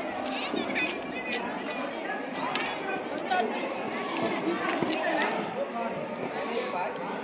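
A crowd of children chatter and call out outdoors.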